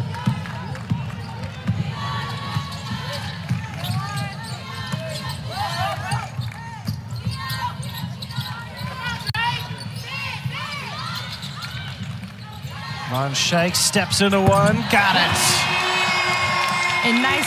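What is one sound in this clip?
A basketball thumps as it is dribbled on the court.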